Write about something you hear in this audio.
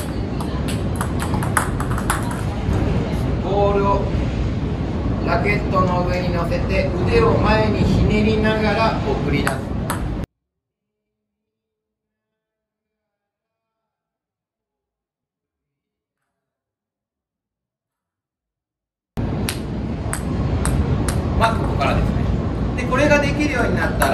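A table tennis ball clicks against paddles and bounces on a table.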